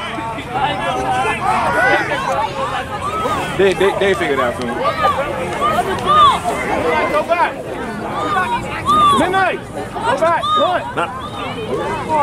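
A crowd of people talks and shouts loudly outdoors.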